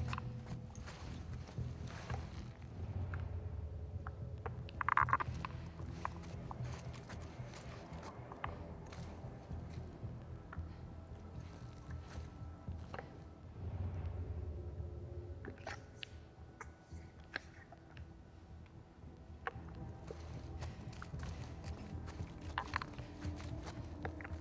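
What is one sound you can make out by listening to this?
Footsteps shuffle softly on concrete stairs.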